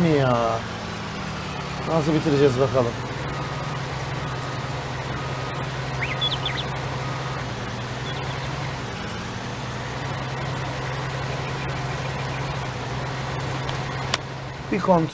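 A heavy harvester engine drones steadily.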